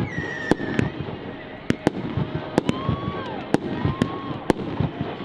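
Fireworks burst with sharp bangs and pops.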